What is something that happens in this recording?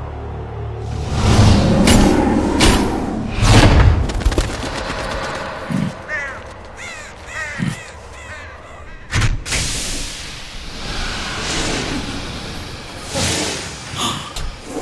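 A heavy mechanical arm clanks and whirs as it moves.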